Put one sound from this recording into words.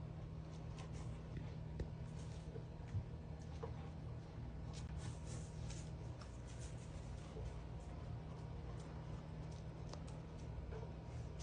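A puppy chews and gnaws softly nearby.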